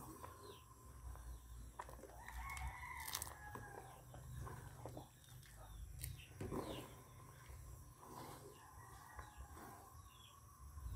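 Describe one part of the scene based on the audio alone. A thick liquid bubbles and simmers in a pot.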